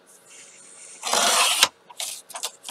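A paper trimmer blade slides along with a short scraping swish, cutting card.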